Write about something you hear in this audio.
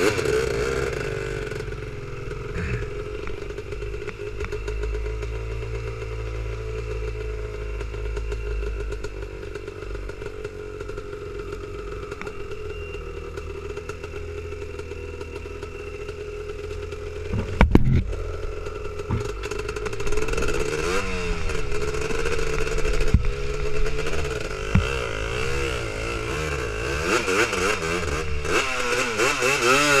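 An ATV engine hums steadily and revs up and down.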